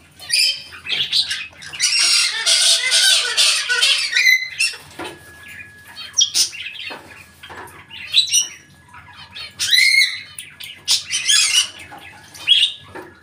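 A parrot squawks and chatters loudly close by.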